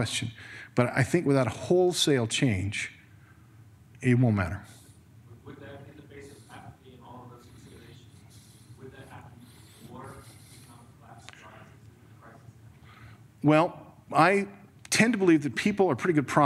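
A middle-aged man speaks into a microphone to a room, with pauses.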